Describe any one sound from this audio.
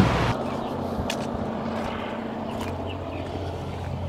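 Footsteps crunch on gravel close by.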